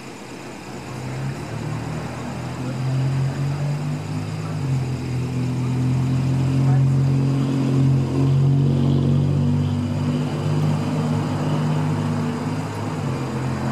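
A car engine hums steadily close by.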